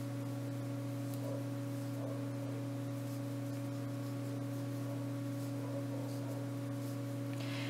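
A crochet hook softly pulls yarn through loops.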